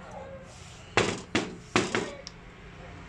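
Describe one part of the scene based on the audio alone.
Metal knocks sharply against metal a few times.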